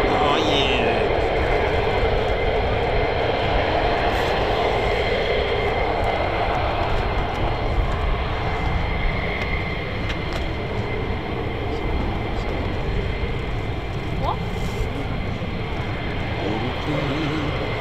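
A jet engine idles with a steady roar and whine.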